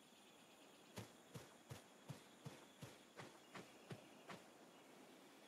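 Footsteps patter quickly on soft ground.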